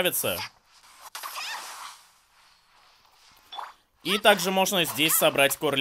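A sword swooshes through the air.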